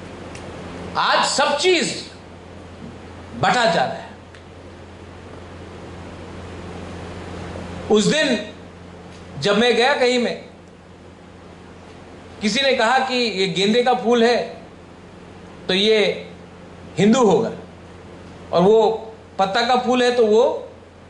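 A young man speaks with animation into a microphone, heard through loudspeakers in a large echoing hall, pausing between phrases.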